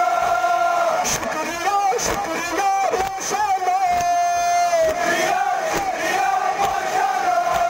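A large crowd of men chants loudly in unison outdoors.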